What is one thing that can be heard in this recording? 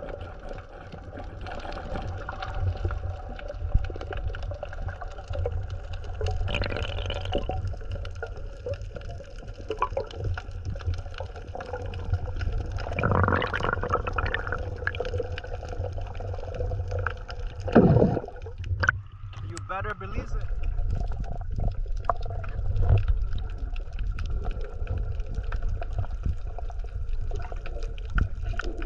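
Water rumbles and swirls, heard from underwater.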